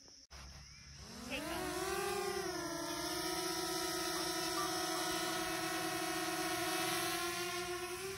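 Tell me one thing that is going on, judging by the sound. A drone's propellers whine steadily overhead.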